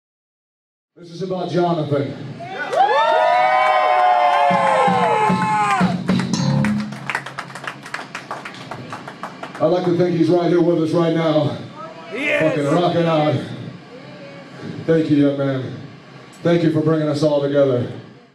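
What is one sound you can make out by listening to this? A man shouts hoarsely into a microphone over loudspeakers.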